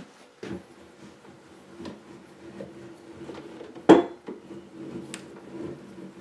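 Metal parts of a small machine knock and click as they are handled.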